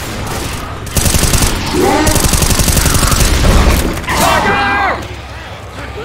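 Zombies growl and shriek nearby.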